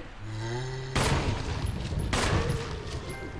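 A gun fires loud shots that echo.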